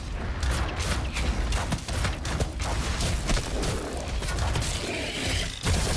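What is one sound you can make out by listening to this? Heavy gunfire blasts in rapid bursts.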